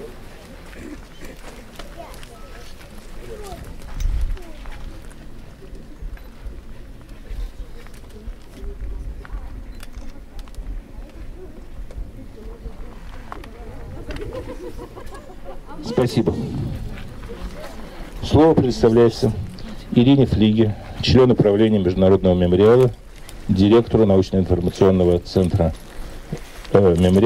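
An elderly man speaks calmly through a microphone and loudspeaker outdoors.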